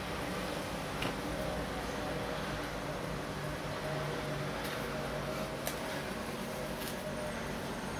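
A wristwatch case clicks and taps faintly as fingers handle it.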